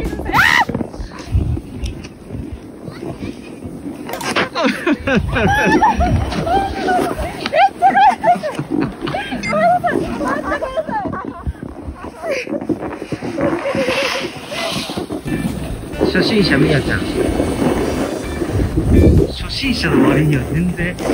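A snowboard scrapes across snow.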